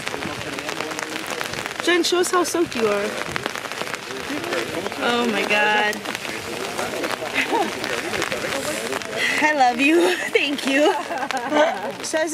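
A woman talks with animation close to a microphone.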